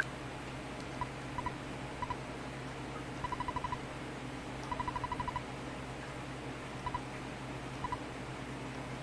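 Short high electronic beeps chirp in quick bursts as game text prints out.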